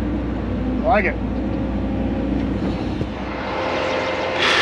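An excavator engine rumbles steadily up close.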